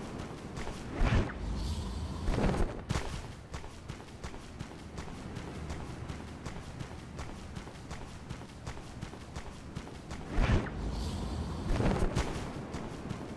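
A sharp whoosh rushes past during a sudden dash.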